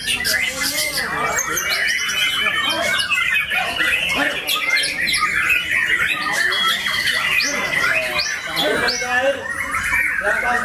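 A songbird sings loud, fast, varied phrases close by.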